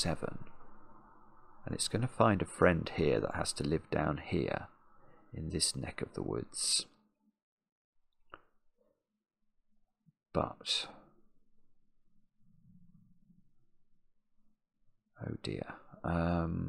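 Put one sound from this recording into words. A middle-aged man talks thoughtfully into a close microphone, with pauses.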